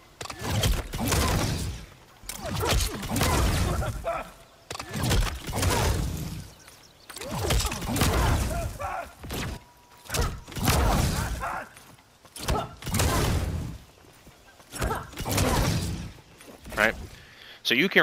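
Fiery blasts and heavy punches burst again and again.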